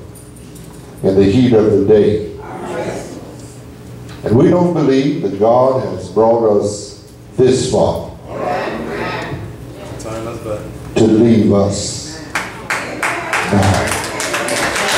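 An elderly man preaches with passion through a microphone in an echoing hall.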